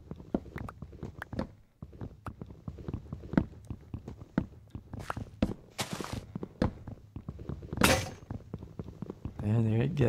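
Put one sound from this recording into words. An axe chops through wooden blocks in a video game.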